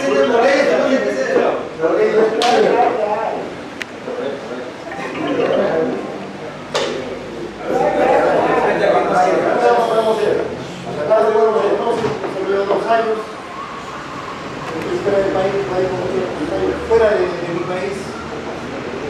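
Several men talk and chatter nearby.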